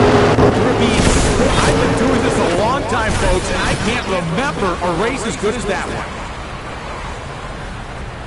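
A racing engine winds down, popping and crackling as it slows.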